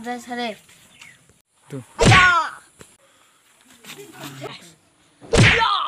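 Young boys talk and shout excitedly close by.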